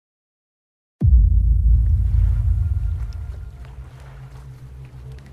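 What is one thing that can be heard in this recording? Deep water rumbles and surges, slowly fading.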